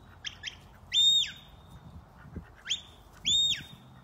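Dogs run across dry grass.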